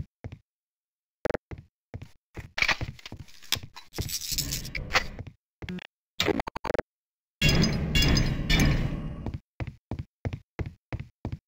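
A weapon clicks and clanks as it is switched.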